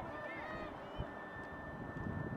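Lacrosse sticks clack together.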